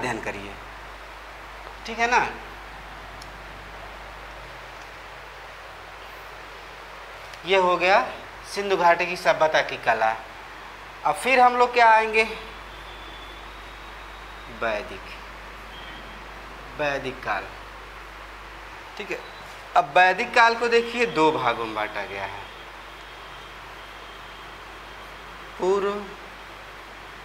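A young man speaks calmly in short bursts.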